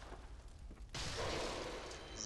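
A magical burst whooshes loudly.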